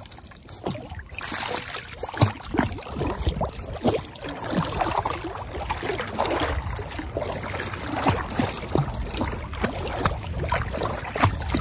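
A puppy snorts and breathes through its nose while swimming.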